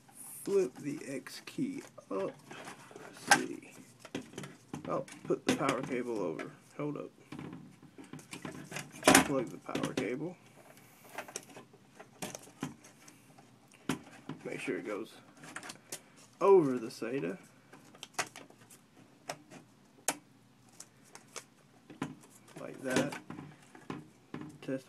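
Plastic and metal parts click and tap.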